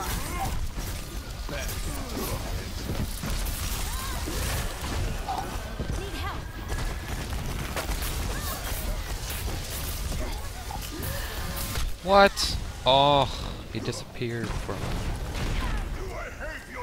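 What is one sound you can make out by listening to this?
Rapid gunfire and energy blasts crackle from a video game.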